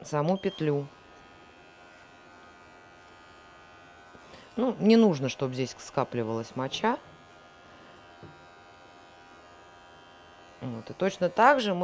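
Electric clippers hum softly.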